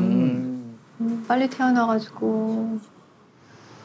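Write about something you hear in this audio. A woman speaks with concern nearby.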